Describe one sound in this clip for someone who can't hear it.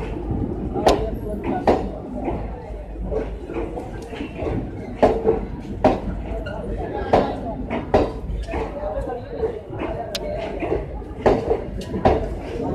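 A passenger train rolls past slowly with a low rumble.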